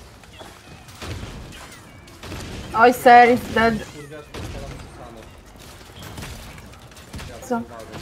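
Weapons fire in quick bursts with sharp zaps.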